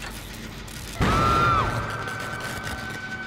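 A loud burst bangs out from a machine.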